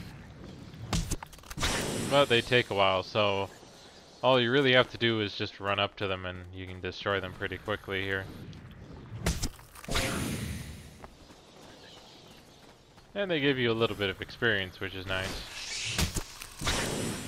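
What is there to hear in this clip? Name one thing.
A plant creature bursts with a loud crunching smash.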